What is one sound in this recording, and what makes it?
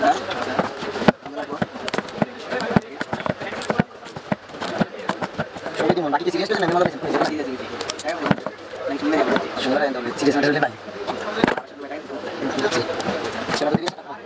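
A wooden mallet taps on wood.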